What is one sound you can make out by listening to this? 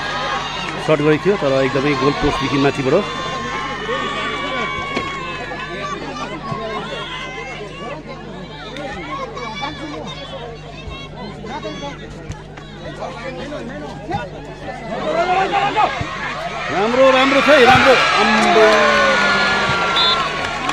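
A large outdoor crowd chatters and shouts.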